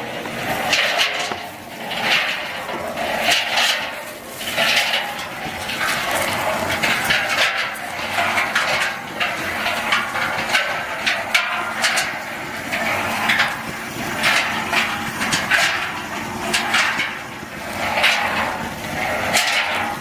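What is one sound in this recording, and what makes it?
Coated peanuts rattle and clatter as they tumble in a mixing drum.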